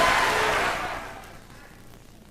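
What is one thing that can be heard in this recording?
A large audience applauds loudly in a big hall, then the applause quickly dies away.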